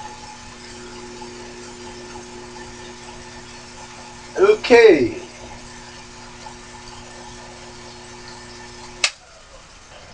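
A small lathe motor hums steadily, then switches off.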